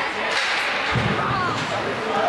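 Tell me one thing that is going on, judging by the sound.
A hockey stick strikes a puck with a sharp clack.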